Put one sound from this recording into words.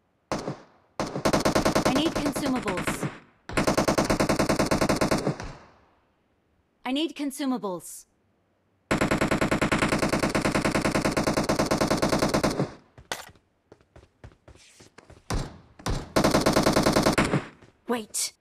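An automatic rifle fires in long rapid bursts.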